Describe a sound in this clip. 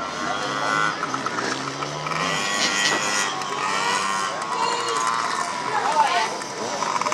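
A motorcycle engine revs in the distance outdoors.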